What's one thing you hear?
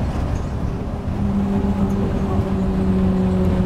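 A motor hums with a steady whine.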